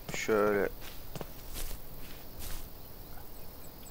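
Footsteps fall on a path.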